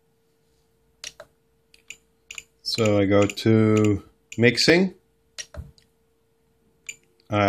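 Small plastic buttons click under a thumb.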